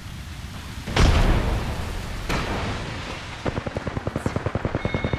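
A fiery explosion roars.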